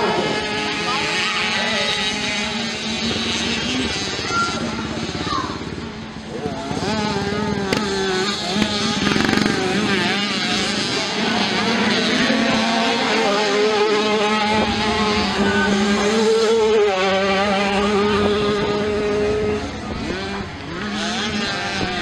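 Motocross bike engines roar and rev as riders race past.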